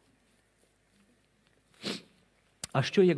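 A man blows his nose.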